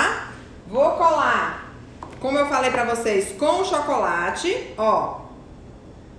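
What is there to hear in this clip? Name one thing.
A woman talks nearby with animation.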